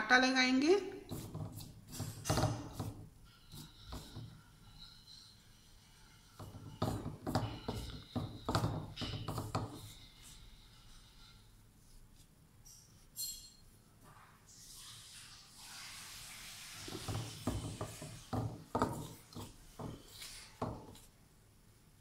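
A hand mixes flour in a metal bowl with soft rustling and scraping.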